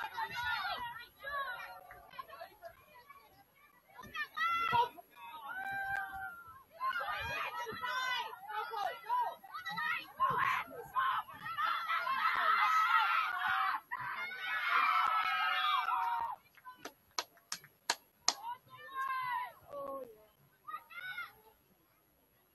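Young women call out and shout to each other across an open outdoor field.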